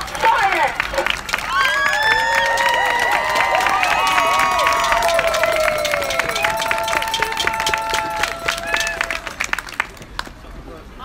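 A large outdoor crowd sings loudly.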